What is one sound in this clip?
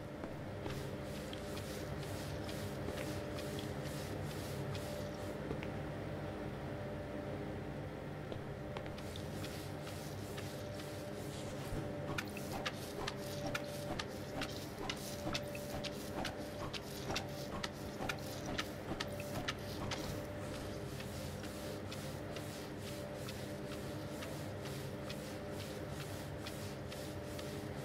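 A sponge squeaks and wipes across a smooth surface.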